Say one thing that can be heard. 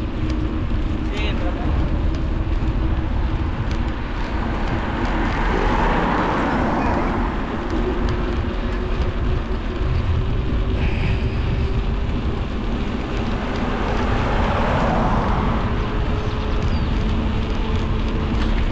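Wind rumbles steadily against the microphone while cycling outdoors.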